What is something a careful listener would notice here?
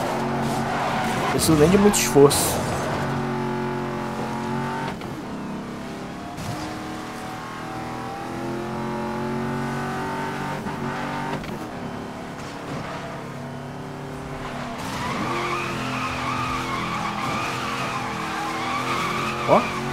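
A car engine roars steadily and shifts pitch as it speeds along.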